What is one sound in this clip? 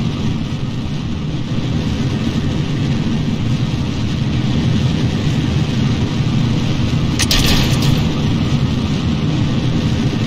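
Steam hisses from the launch pad.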